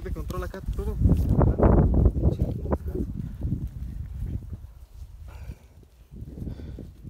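Dry branches rustle and crackle as a man pushes through brush.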